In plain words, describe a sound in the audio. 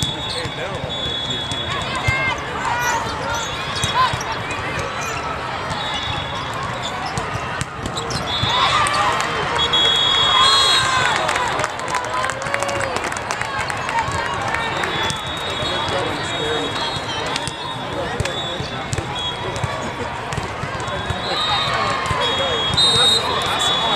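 Shoes squeak on a hard court floor.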